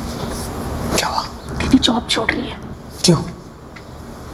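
A young man asks questions urgently, heard through loudspeakers in a large room.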